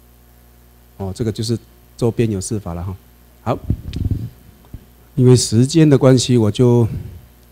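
A man speaks through a microphone in a lecture, pausing between phrases.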